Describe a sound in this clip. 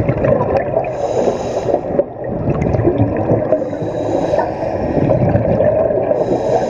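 Water rumbles and gurgles steadily, heard from underwater.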